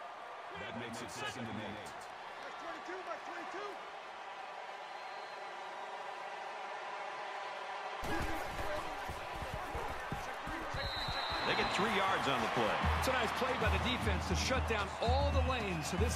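A large stadium crowd roars and cheers steadily, growing louder.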